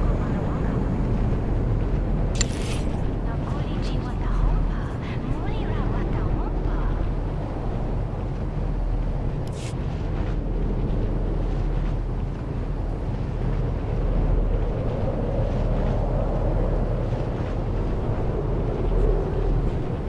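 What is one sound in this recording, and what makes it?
A hovering speeder engine hums steadily.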